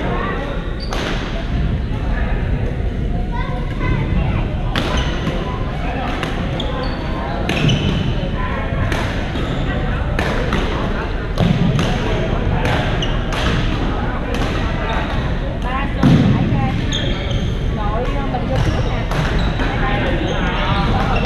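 Rackets smack a shuttlecock back and forth with sharp pops.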